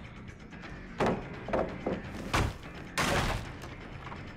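A wooden pallet smashes and splinters loudly.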